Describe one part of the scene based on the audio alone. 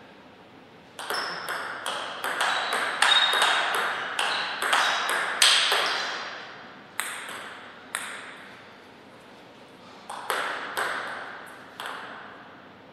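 A table tennis ball clicks quickly back and forth off paddles and a table in an echoing hall.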